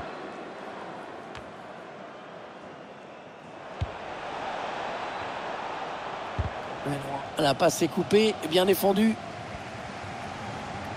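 A large stadium crowd roars steadily, swelling louder partway through.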